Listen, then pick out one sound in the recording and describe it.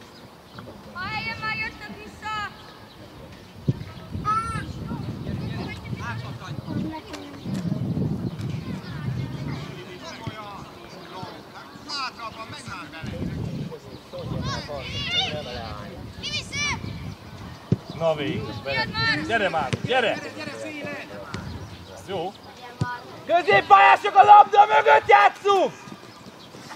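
Young players shout and call out across an outdoor pitch.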